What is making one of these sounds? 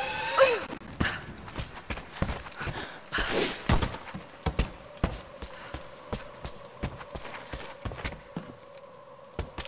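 Footsteps thud steadily on rock and wooden boards.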